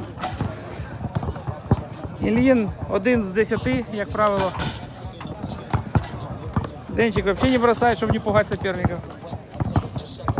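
A basketball bounces on a hard court.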